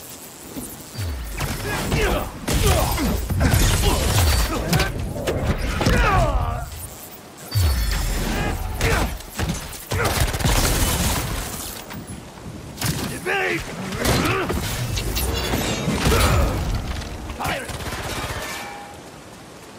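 Punches and kicks thud in a fast video game fight.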